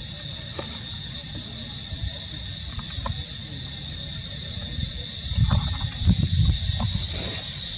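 A baby monkey suckles at its mother's nipple.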